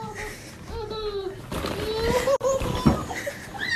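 Plastic balls rattle as a small dog scrambles through them.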